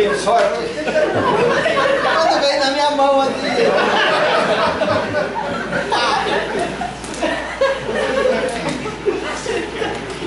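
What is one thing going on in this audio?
A man speaks with animation to an audience.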